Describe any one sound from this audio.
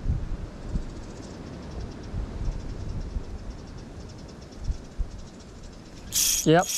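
A fishing reel ticks rapidly as it is wound in.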